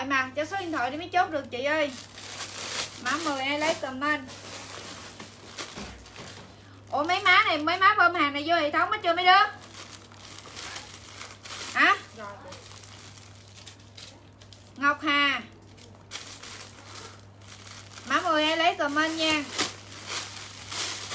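Plastic bags and clothes rustle and crinkle in handling.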